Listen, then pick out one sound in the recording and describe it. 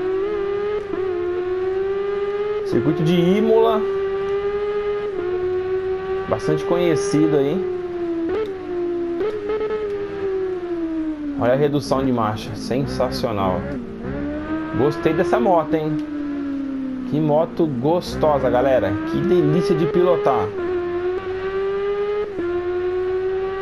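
A motorcycle engine whines at high revs, rising and falling as gears shift.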